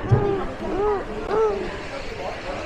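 A baby whines and fusses close by.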